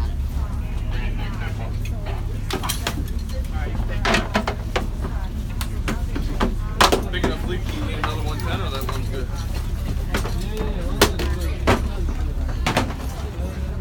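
Plastic life jackets knock and clatter close by.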